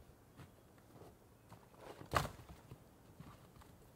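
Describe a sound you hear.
Firewood tumbles out of a canvas bag and clatters onto a pile.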